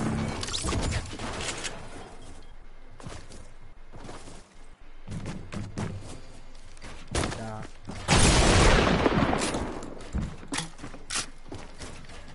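Building pieces clatter into place rapidly.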